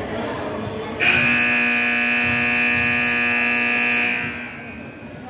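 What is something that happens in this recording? A scoreboard buzzer sounds in a large echoing hall.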